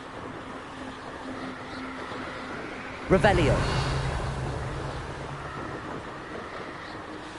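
Wind rushes steadily outdoors.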